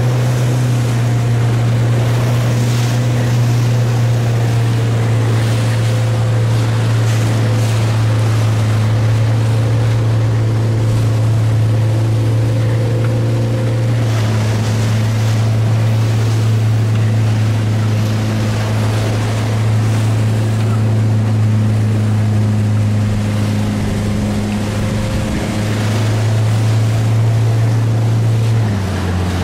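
Waves lap and churn in the wind.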